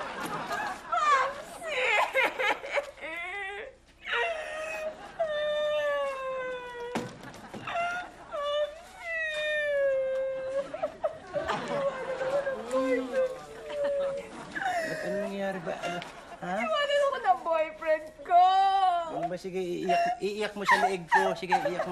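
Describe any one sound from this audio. A woman sobs and wails loudly.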